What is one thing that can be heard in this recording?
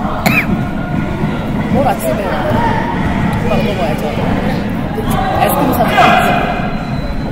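Two young women let out sharp shouts as they kick, in a large echoing hall.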